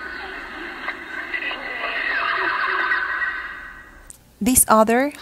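Beluga whales chirp and whistle underwater.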